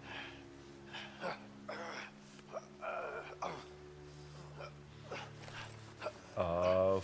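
A man pants heavily up close.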